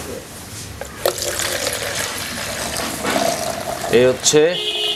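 Milk pours and splashes into a plastic jug.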